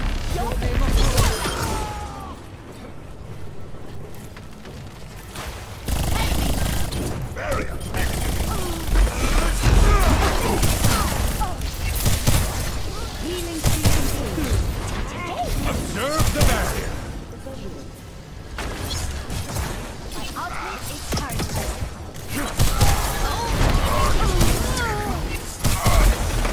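Video game gunfire and energy blasts crackle and zap in bursts.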